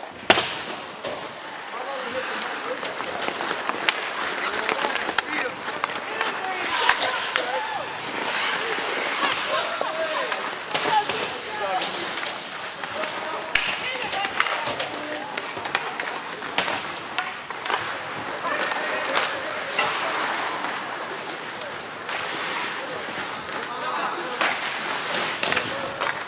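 Young players and spectators shout and call out in a large echoing rink.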